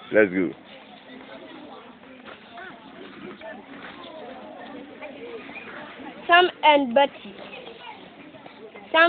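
A young boy speaks close by, haltingly, as if reading aloud.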